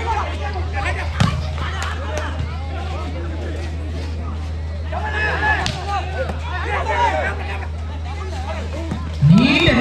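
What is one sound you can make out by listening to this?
A volleyball is struck hard by hands.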